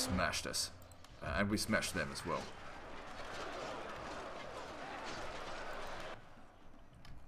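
Weapons clash and clatter in a battle.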